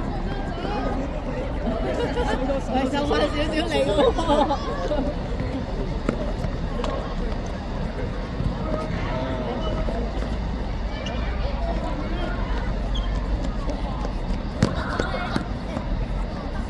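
Children shout and call out across an open outdoor court.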